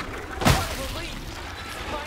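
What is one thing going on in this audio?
A fleshy mass bursts with a loud wet splatter.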